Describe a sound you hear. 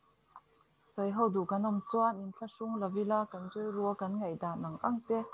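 A man speaks calmly over an online call.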